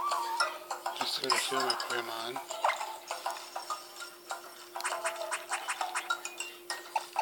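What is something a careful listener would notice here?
Short electronic menu blips chime from a small game speaker.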